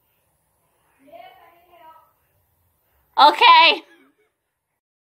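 A young woman speaks close to a microphone in a bright, playful voice.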